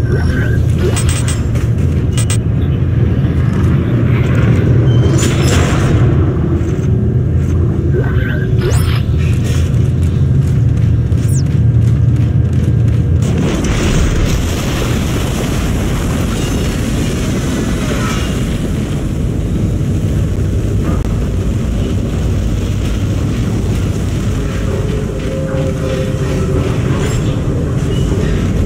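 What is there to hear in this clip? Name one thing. A deep mechanical hum drones steadily throughout.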